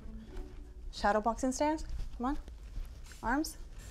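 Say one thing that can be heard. A second woman answers, speaking with animation close by.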